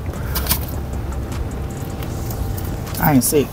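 A man bites into crunchy food.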